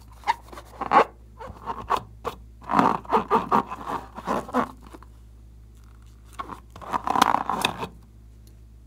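A rubber balloon squeaks as fingers rub and squeeze it.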